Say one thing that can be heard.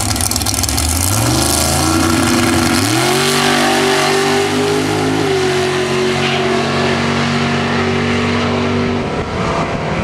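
Two racing cars roar off the line, their engines rising in pitch as they speed away.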